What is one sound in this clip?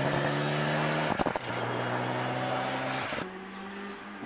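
A rally car's engine roars and revs as the car speeds away.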